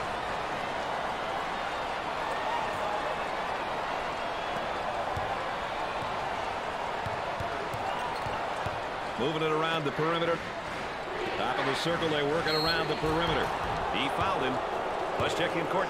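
A large crowd murmurs and roars in an echoing arena.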